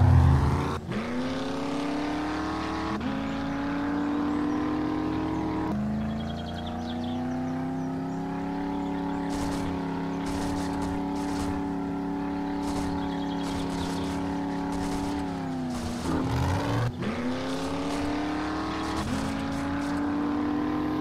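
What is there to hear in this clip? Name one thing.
A truck engine revs and drones, dropping and climbing in pitch as it shifts gears.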